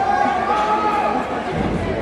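A wrestler's body slams onto the ring mat with a thud.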